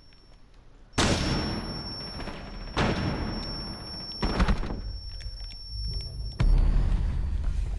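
Rifles fire loud, rapid bursts of gunshots.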